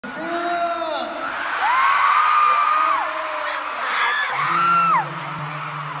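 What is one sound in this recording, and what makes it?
A crowd of young women screams and cheers loudly.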